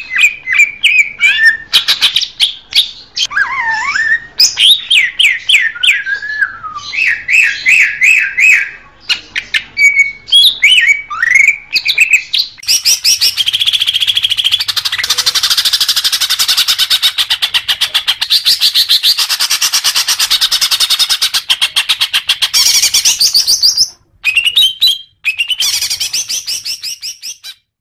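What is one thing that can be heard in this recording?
A songbird sings loud, rapid, varied chirps and trills.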